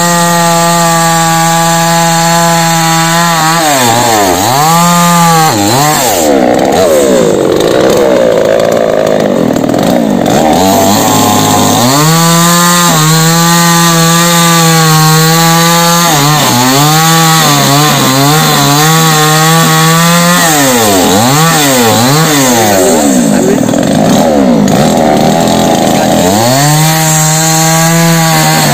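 A chainsaw engine idles and revs up and down loudly while cutting through wood.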